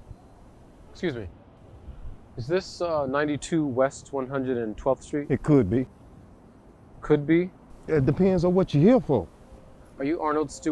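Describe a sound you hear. A man speaks calmly and clearly, close by, outdoors.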